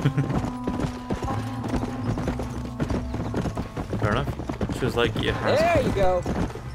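Horses gallop with rapid hoofbeats on a dirt track.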